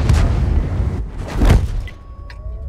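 A shell explodes with a loud boom.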